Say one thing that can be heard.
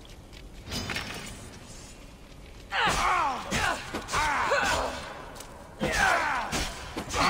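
A staff swishes and strikes with heavy thuds.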